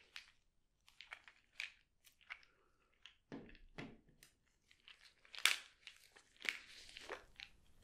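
Plastic bottles tap and rattle close by.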